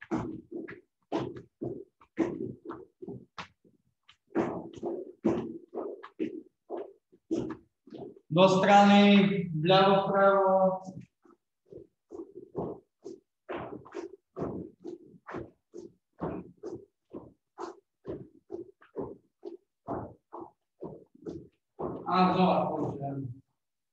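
A boy's feet thump on a hard floor as he jumps.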